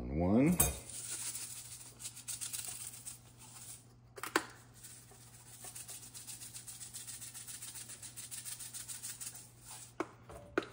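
Seasoning rattles quickly out of a plastic shaker.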